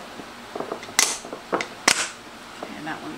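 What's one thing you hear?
A plastic lid snaps onto a container.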